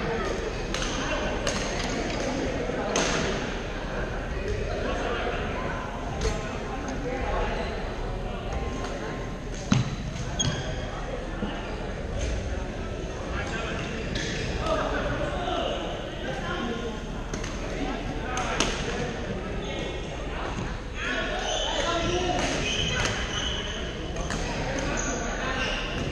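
A murmur of many voices fills the hall.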